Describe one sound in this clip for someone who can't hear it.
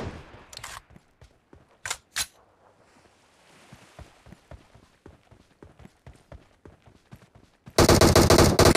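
Footsteps crunch over dry ground at a run.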